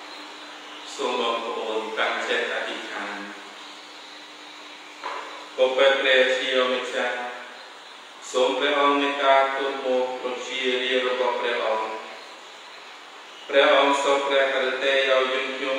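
A man chants prayers through a microphone in a room that echoes.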